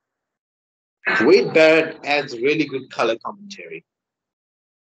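A young man speaks with animation over an online call.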